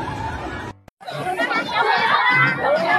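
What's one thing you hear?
A crowd of women cheer and sing outdoors.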